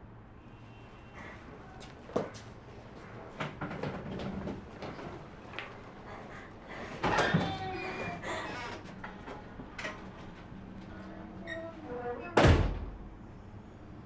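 A young woman sobs, muffled into a sleeve.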